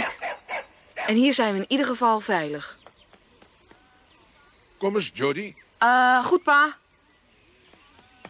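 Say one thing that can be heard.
A young boy speaks anxiously.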